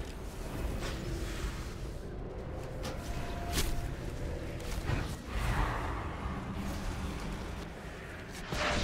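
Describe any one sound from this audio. Spell blasts and weapon hits crash repeatedly in a chaotic battle.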